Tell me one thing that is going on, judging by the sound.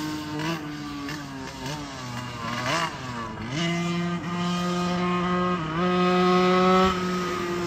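A go-kart engine whines nearby, revving up and down as it races past.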